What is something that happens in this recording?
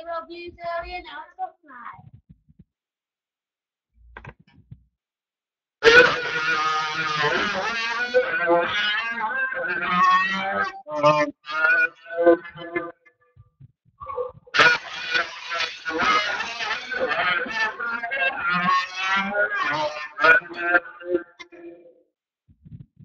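A young man talks with animation through a television speaker.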